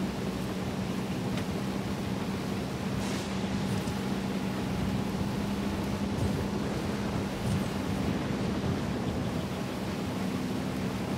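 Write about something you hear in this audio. Tyres rumble over a dirt track.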